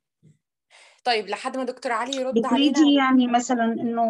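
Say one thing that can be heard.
A middle-aged woman speaks steadily over an online call.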